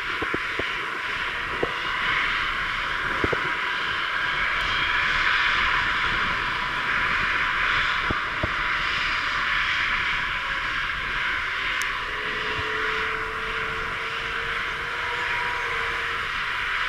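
A large jet airliner's engines roar and whine steadily as it taxis slowly past, close by.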